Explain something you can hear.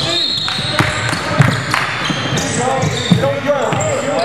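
A basketball bounces with hollow thuds on a wooden floor.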